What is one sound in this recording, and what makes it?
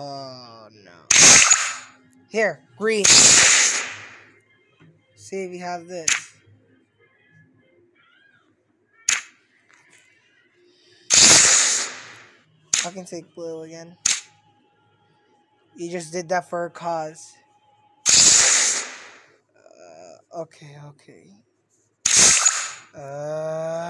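Cards swish onto a pile in a card game.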